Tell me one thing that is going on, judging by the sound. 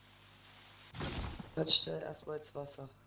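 A tree crashes down to the ground.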